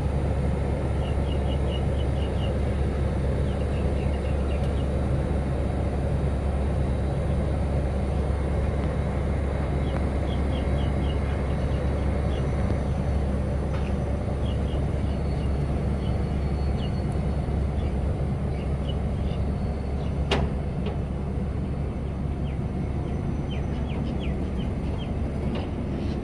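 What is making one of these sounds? A train's diesel engine idles with a steady low rumble close by.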